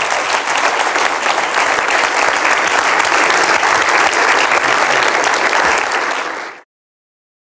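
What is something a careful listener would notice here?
A large audience applauds in a big hall.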